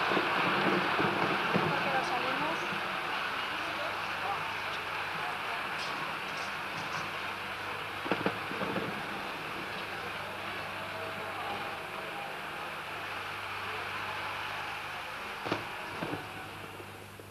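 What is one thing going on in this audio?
A large crowd applauds in a big hall, the clapping slowly fading.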